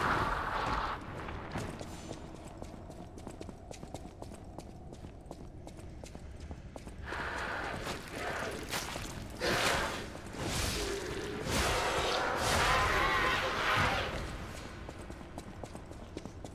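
Footsteps clatter on stone.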